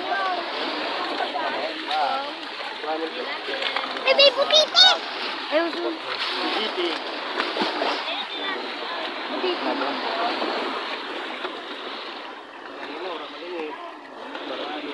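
Wet fish and crabs rustle and slap as hands sort through a net.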